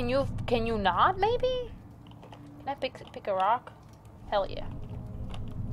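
A young woman talks animatedly into a microphone, close by.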